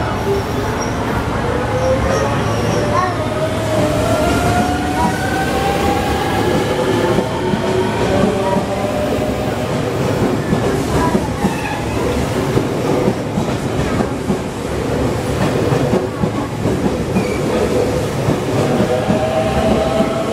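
A train's motors whine, rising in pitch as it speeds up.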